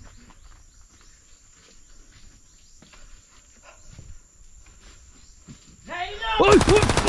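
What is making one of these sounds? Footsteps crunch softly on a gravel path.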